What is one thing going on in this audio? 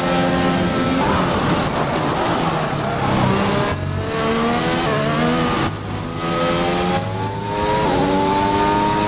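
A racing car engine drops in pitch as the car brakes hard, then climbs again.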